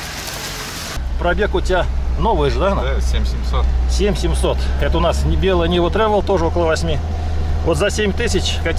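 A middle-aged man talks calmly close by inside a car.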